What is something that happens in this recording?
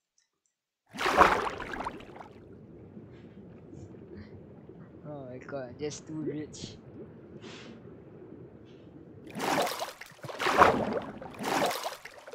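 Water splashes and sloshes as someone swims.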